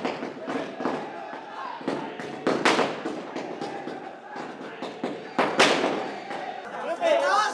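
Firecrackers burst with loud bangs and crackle.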